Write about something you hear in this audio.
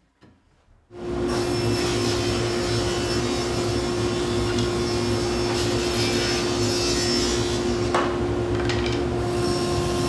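A table saw runs with a steady whine.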